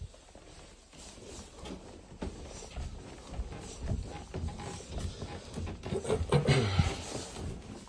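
Footsteps thud softly on carpeted stairs.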